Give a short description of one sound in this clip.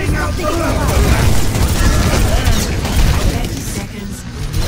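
Rapid gunfire rattles and booms in a video game.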